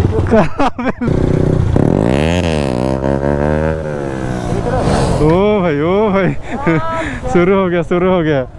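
A motorcycle engine revs up and down repeatedly.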